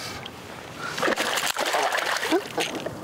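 A hooked fish thrashes and splashes at the water's surface.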